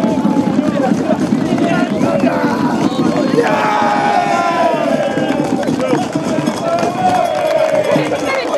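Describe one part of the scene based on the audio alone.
Young men cheer and shout close by.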